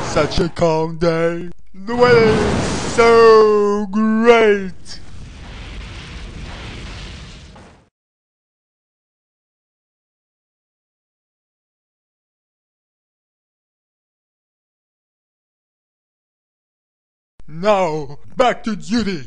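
A man speaks in an exaggerated cartoon voice.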